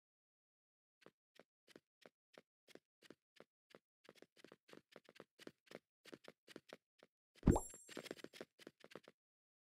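Quick footsteps patter along steadily.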